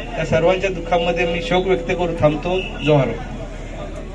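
A middle-aged man speaks calmly into a microphone over a loudspeaker outdoors.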